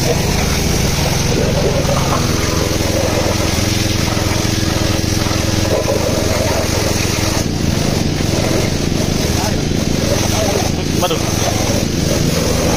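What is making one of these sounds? A pressure washer sprays a hard jet of water against metal.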